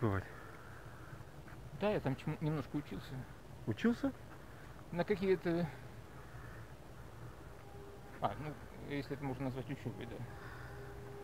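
A middle-aged man speaks calmly in short bursts, close by, outdoors.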